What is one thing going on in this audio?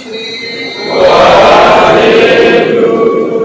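A group of men shouts together loudly.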